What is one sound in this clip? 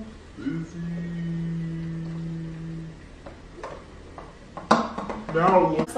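Soda pours into a pitcher of ice.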